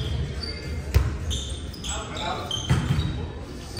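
A volleyball is struck with sharp thuds in a large echoing gym.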